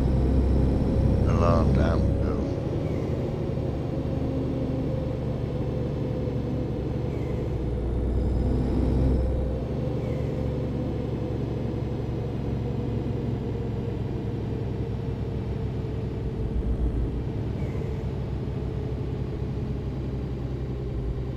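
A truck's diesel engine hums steadily as it drives along.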